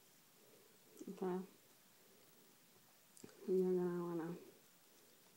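A young woman speaks briefly close by.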